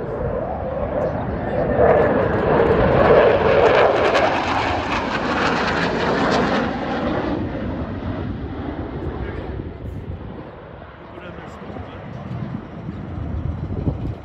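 Jet engines roar loudly overhead, swelling as they pass and then fading into the distance.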